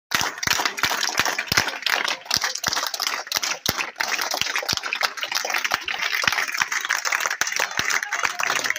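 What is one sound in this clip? A crowd claps hands steadily close by.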